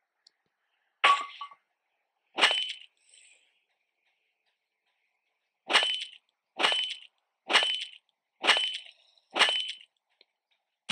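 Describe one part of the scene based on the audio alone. A character strikes a gas cylinder with sharp, repeated metal clangs.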